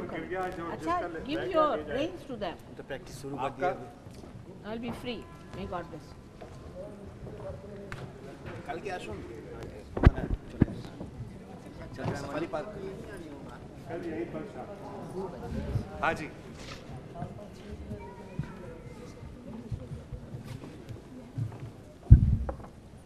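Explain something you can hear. A crowd of men and women chatters close by.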